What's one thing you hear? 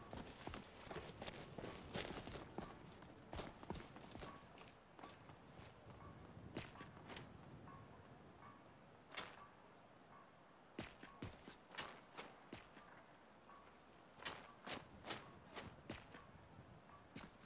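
Footsteps thud on stone and dirt.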